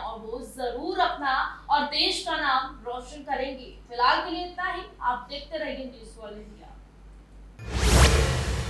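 A young woman speaks clearly and steadily into a microphone, like a news presenter.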